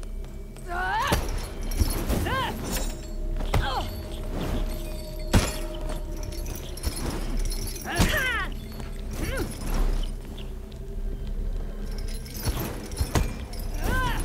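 Sharp blows land in a fight.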